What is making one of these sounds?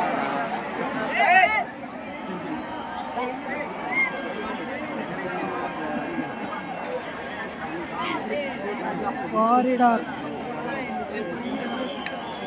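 A large crowd of young men chatters and shouts outdoors.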